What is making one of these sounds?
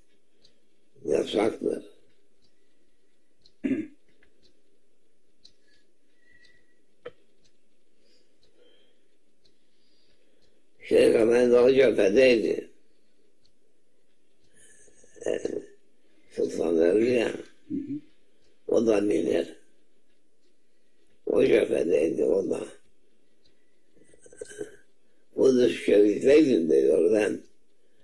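An elderly man speaks calmly in short bursts with long pauses, close by.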